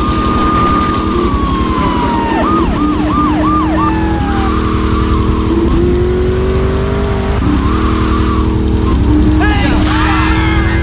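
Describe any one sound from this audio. A car engine hums steadily and revs as a car drives along.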